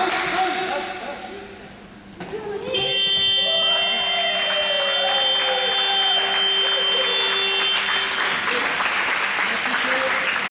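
Shoes squeak on a hard indoor court.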